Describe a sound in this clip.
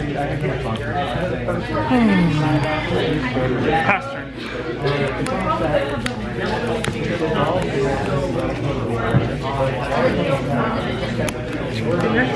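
Playing cards slide and tap softly on a play mat.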